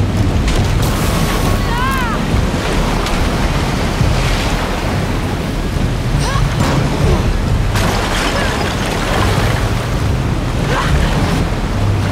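Sparks crackle and burst sharply.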